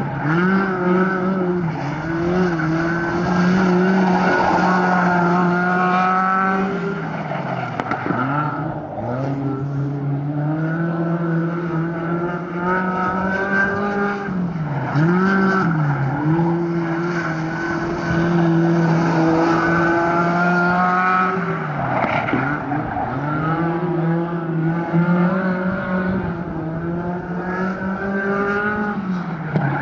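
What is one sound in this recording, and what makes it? A small open-wheel race car's engine drones as it laps a dirt oval, easing off in the turns and then speeding up again.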